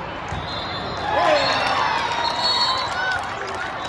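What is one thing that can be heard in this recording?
Young players shout and cheer together in a team huddle.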